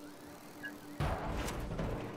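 A person lands on a rooftop with a thud.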